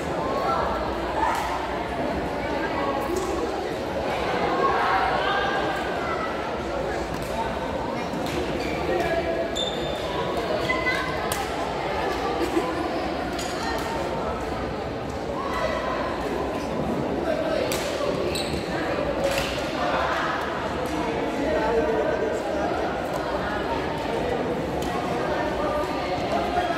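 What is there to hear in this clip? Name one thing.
A crowd chatters steadily in the background.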